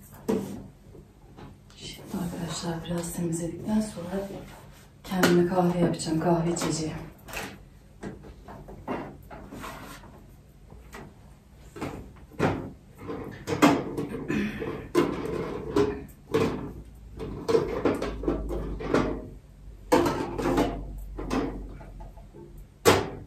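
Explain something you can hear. Objects clatter and knock as a woman handles them.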